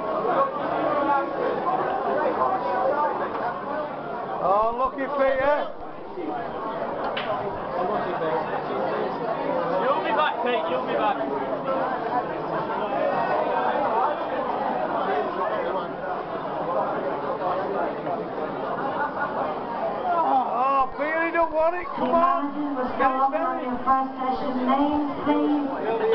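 Many people talk at once in a large, echoing hall.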